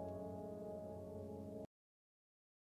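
A piano plays a gentle melody.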